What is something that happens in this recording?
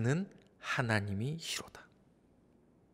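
A man speaks calmly into a microphone in a reverberant hall.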